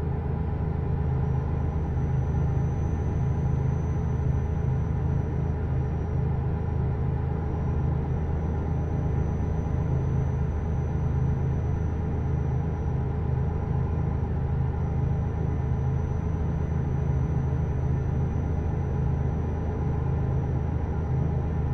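A truck engine drones steadily at a constant speed.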